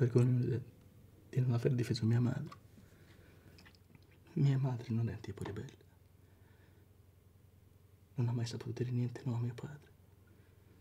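A man speaks quietly and emotionally, close by.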